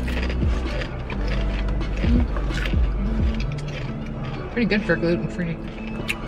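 A young woman chews crunchy snacks.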